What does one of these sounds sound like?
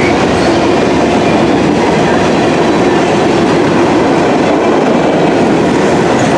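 A freight train rumbles past close by, its wheels clattering and squealing on the rails.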